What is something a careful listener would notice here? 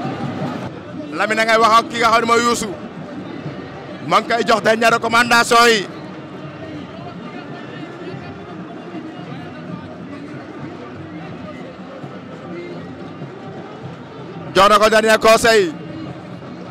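A man sings out loudly in short bursts close by.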